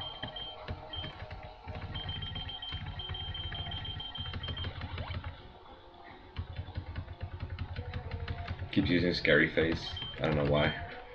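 Chiptune video game music plays with a steady beat.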